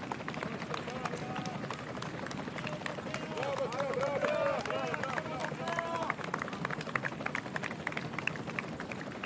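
A crowd of spectators cheers.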